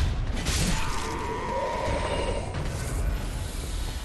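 Fire bursts and roars.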